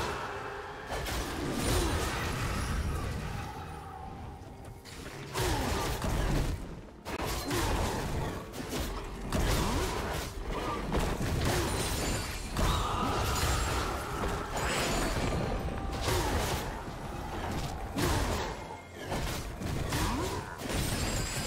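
Video game spell and sword effects clash and crackle in quick bursts.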